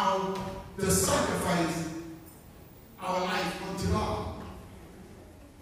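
A man preaches with animation into a microphone, heard through loudspeakers in a large echoing hall.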